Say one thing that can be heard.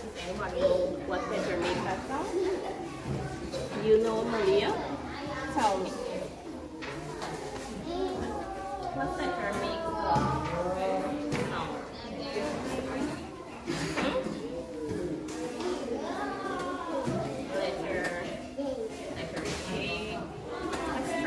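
A woman talks to young children in a lively, sing-song voice.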